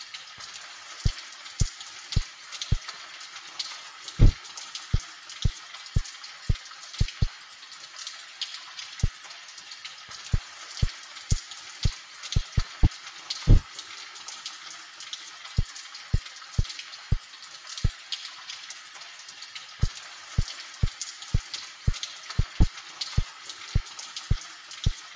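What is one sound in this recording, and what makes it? Footsteps tap steadily on a hard tiled floor.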